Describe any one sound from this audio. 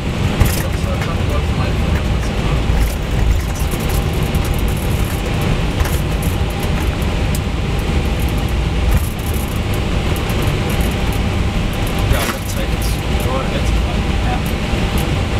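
Jet engines roar steadily as an airliner speeds down a runway.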